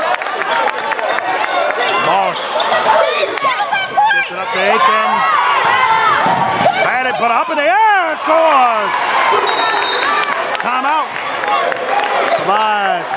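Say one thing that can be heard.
A crowd in an echoing gym chatters and calls out.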